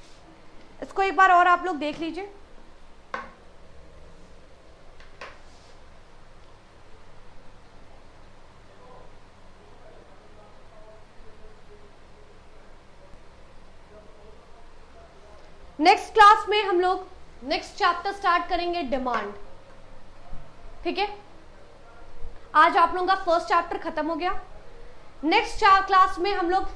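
A young woman speaks clearly into a nearby microphone, in short bursts with pauses.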